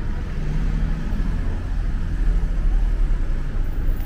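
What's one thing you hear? A pickup truck drives along a nearby street.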